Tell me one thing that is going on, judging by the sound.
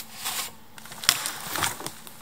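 Dry wood snaps with a sharp crack.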